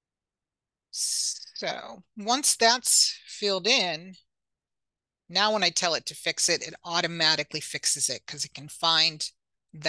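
A woman speaks calmly through a microphone, close by.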